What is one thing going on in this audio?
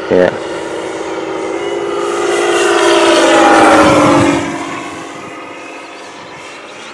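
A propeller plane engine roars overhead, growing louder as it passes close, then drops in pitch and fades away.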